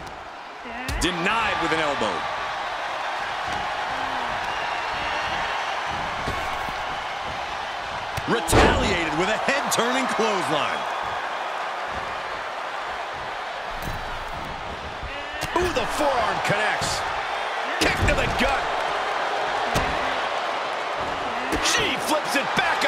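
Bodies slam hard onto a wrestling ring's mat.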